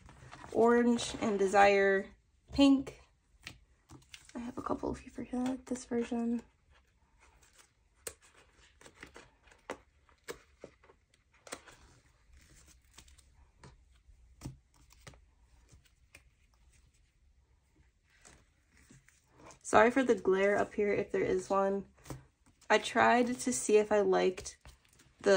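Plastic sleeves crinkle and rustle under hands.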